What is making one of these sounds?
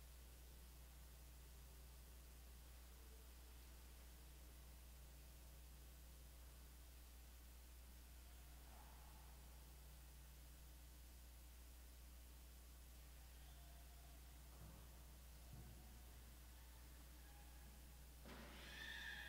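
Footsteps echo softly across a large, quiet hall.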